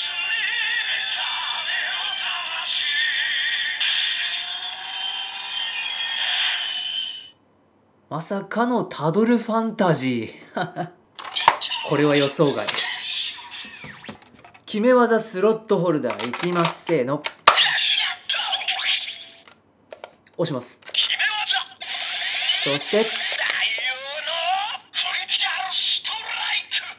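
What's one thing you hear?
A toy plays loud electronic music through a small tinny speaker.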